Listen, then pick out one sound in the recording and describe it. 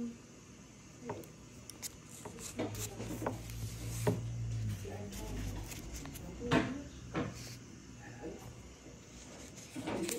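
A metal blade scrapes and taps against a paper envelope.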